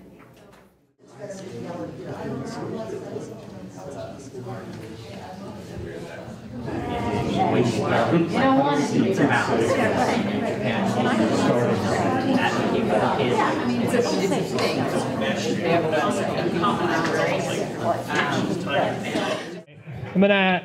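Many people talk at once, with a steady murmur of voices.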